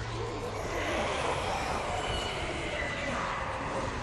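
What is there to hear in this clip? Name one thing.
Spirits wail eerily.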